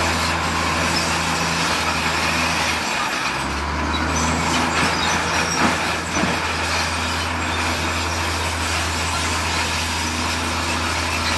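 Bulldozer tracks clank over dirt and rubble.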